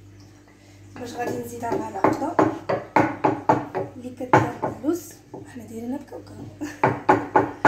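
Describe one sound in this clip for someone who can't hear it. A wooden pestle pounds rhythmically in a mortar.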